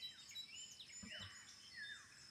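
A golf club strikes a ball with a sharp smack.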